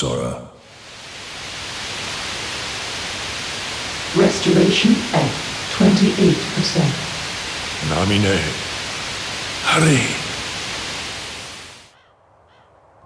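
Loud static hisses steadily.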